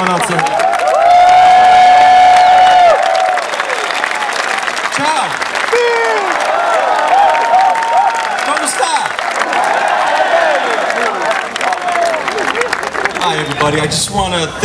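A crowd cheers and sings along.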